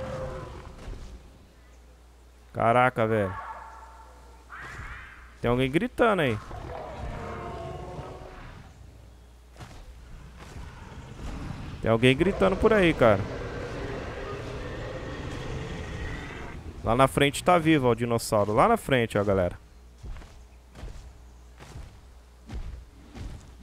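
Heavy footsteps thud on grass.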